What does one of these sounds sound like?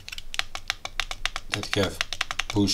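A rotary knob clicks rapidly as it is turned.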